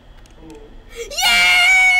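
A loud shrill screech blares suddenly.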